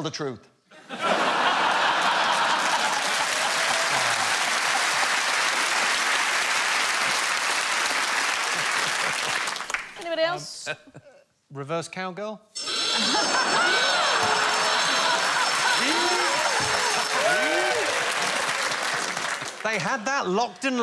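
A large audience laughs and applauds loudly.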